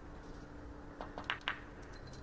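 A cue strikes a billiard ball with a sharp tap.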